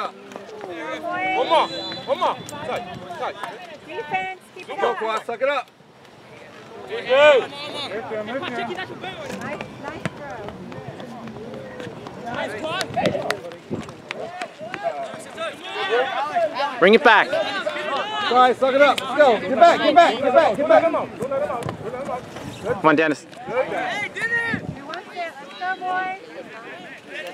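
Men close by talk and shout excitedly.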